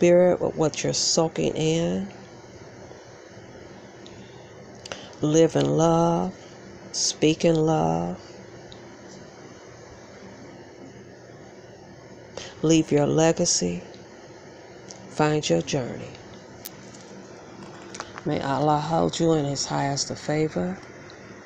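A woman talks close by in short bursts, with pauses between.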